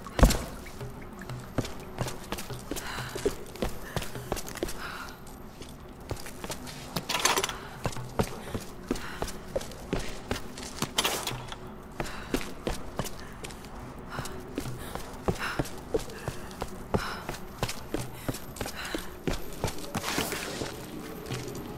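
Footsteps crunch on gravel and debris.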